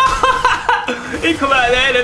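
A man laughs loudly into a close microphone.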